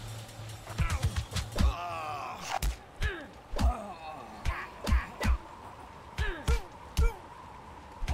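Heavy punches and blows thud in a fight.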